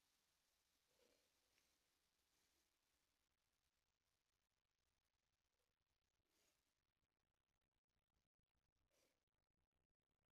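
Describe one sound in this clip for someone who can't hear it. A woman breathes out slowly and softly, very close by.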